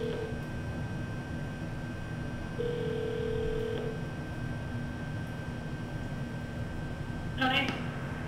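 An elevator hums steadily as it runs.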